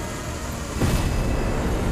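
A heavy blow strikes with a sharp impact.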